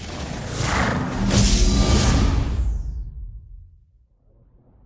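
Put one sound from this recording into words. A startup chime swells brightly and fades away.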